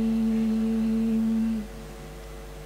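A young woman holds a long sung note through a microphone, then falls silent.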